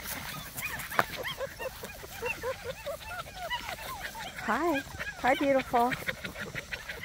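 A puppy whines with high, squeaky cries.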